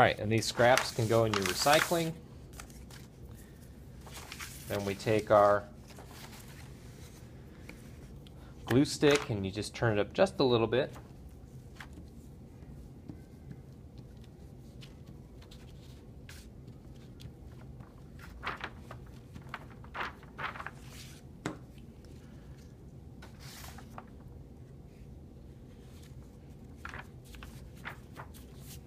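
Paper rustles and crinkles as it is handled and pressed flat.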